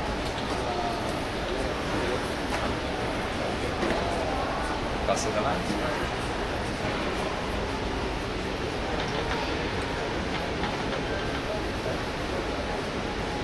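A folding scooter clunks and clicks as it is folded.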